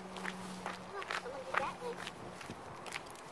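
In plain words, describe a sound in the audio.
A man speaks casually outdoors.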